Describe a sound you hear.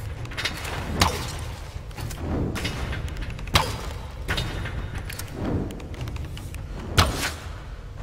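Arrows are loosed from a bow with sharp twangs.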